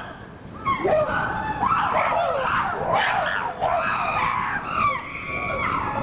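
A chimpanzee calls out close by.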